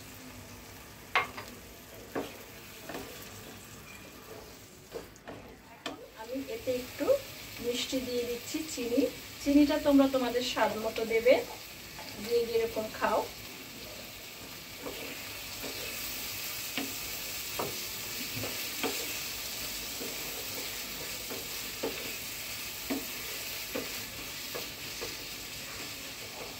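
A wooden spatula scrapes and knocks against a frying pan.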